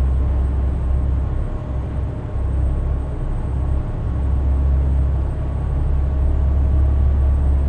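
Tyres roll on the road with a constant rumble.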